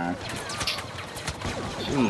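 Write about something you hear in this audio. Blaster shots zap nearby.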